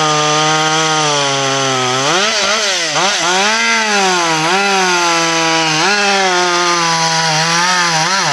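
A chainsaw engine whines loudly, its pitch rising and falling as it cuts through a log.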